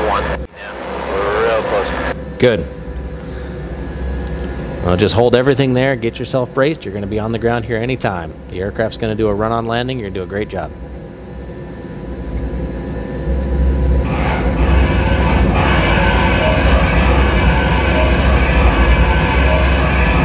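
A helicopter engine hums and whirs steadily, growing louder.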